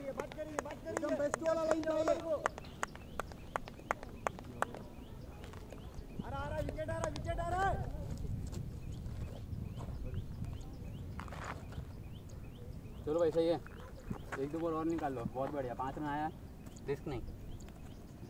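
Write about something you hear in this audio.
Men call out to each other across an open field outdoors.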